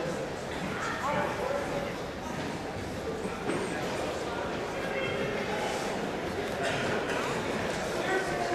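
Spectators call out from the sidelines in a large echoing hall.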